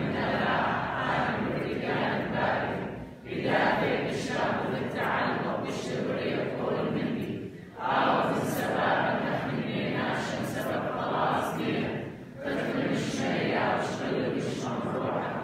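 A congregation sings along together.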